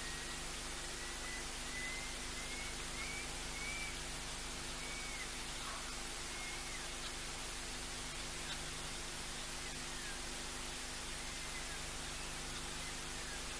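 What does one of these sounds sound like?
A lion laps water.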